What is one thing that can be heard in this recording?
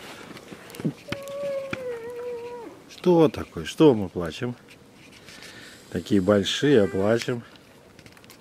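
A young moose bleats and grunts close by.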